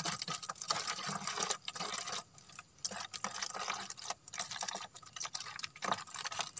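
Liquid pours and splashes into a plastic bottle.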